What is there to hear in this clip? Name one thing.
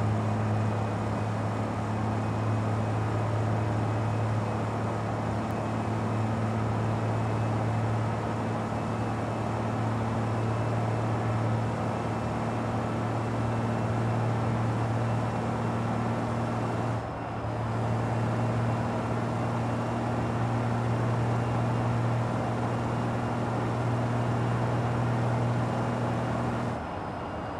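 Tyres hum on a road surface.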